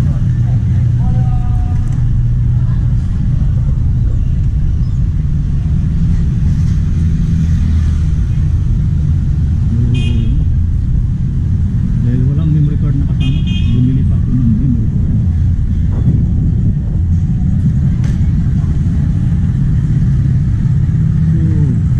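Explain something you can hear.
Motor scooters ride along a city street.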